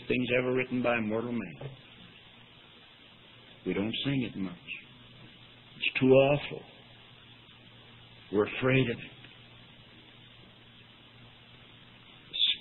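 An elderly man speaks slowly with long pauses, heard through an old, thin-sounding recording.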